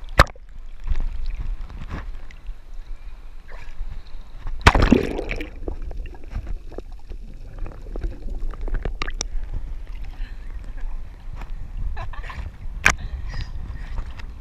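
Sea water sloshes and splashes at the waterline.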